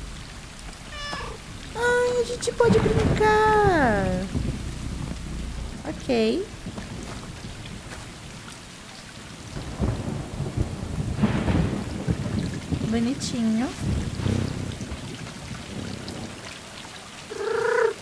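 Cats meow repeatedly.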